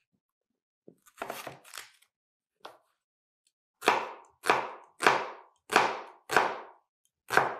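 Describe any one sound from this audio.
A knife chops onion on a wooden board with steady knocks.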